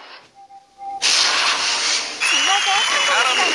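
A bright magical whoosh swells and shimmers.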